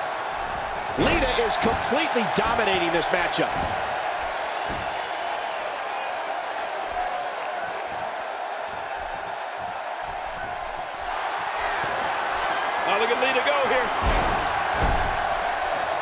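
Heavy thuds sound as bodies slam onto a wrestling mat.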